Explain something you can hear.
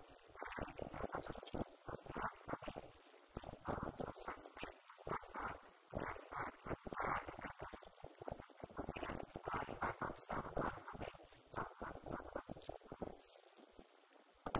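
A woman speaks with animation into a microphone over a loudspeaker.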